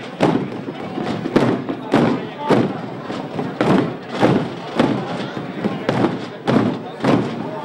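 A crowd murmurs quietly.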